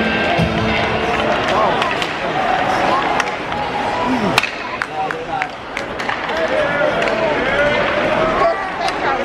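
Hockey sticks clack against a puck.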